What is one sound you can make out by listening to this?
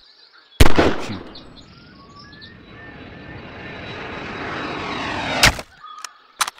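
A bullet whooshes through the air, rising in pitch.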